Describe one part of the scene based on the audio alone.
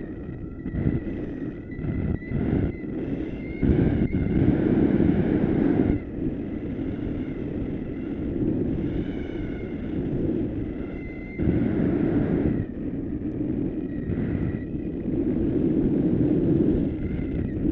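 Wind rushes loudly over a microphone outdoors.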